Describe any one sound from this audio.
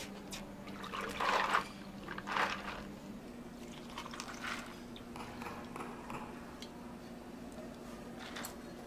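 Milk pours and splashes over ice.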